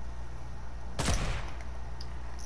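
A sniper rifle fires with a sharp crack.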